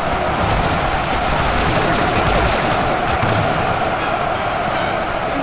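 Laser blasts zap and crackle rapidly in a huge battle.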